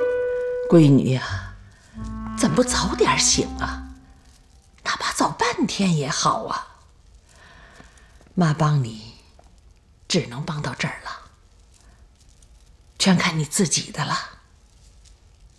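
An elderly woman speaks nearby with feeling, in short phrases.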